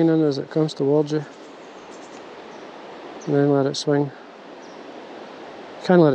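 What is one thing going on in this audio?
Water ripples and flows gently along a river.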